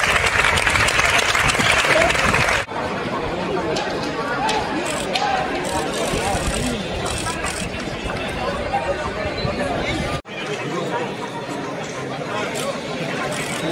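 A crowd of young men chatters and shouts outdoors.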